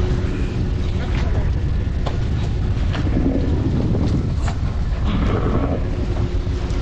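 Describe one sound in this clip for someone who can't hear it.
A fishing net rustles and scrapes as hands pull it.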